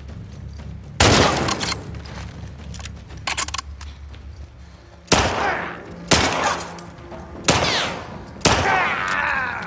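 Gunshots ring out loudly, echoing in a large room.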